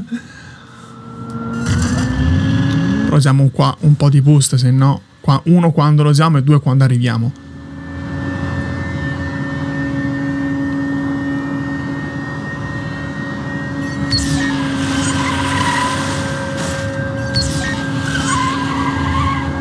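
A car engine revs up and then hums steadily.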